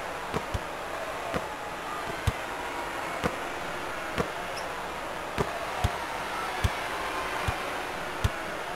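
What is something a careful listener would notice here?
A basketball bounces on a hardwood court in sharp, regular thumps.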